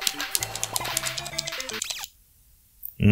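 Bleeping arcade game music plays briskly, then cuts off.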